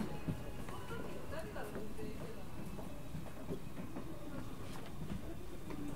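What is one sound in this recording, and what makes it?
A train hums low and steadily while standing still.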